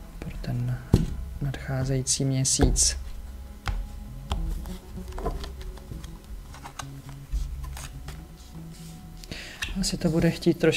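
Playing cards tap and slide softly on a table.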